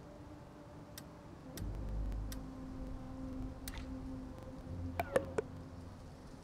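Short interface clicks sound as menu buttons are pressed.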